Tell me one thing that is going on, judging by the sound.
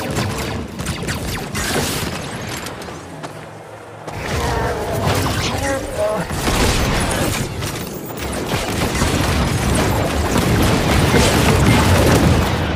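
Gunshots and blasts crackle in a fast-paced fight.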